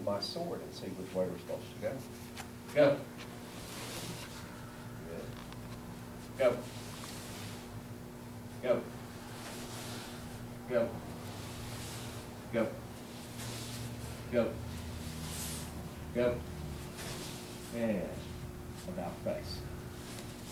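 A man shouts out counts at a steady pace.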